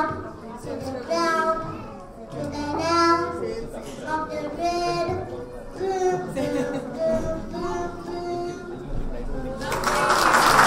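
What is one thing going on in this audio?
A young child sings through a microphone and loudspeakers.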